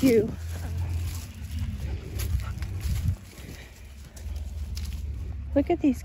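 A dog's paws patter and rustle on dry grass.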